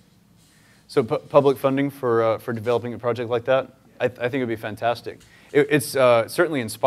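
A young man speaks calmly to an audience through a microphone.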